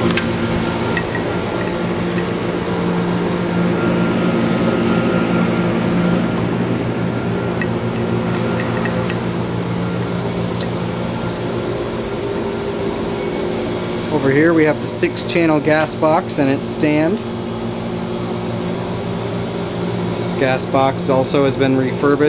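Machinery hums steadily nearby.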